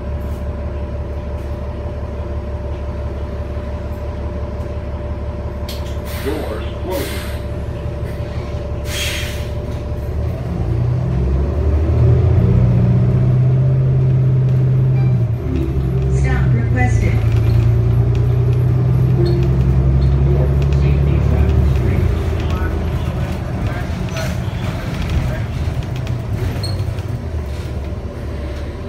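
A bus engine hums and rumbles steadily, growing louder as the bus speeds up.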